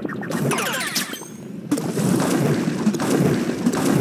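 Coins jingle in a quick bright burst.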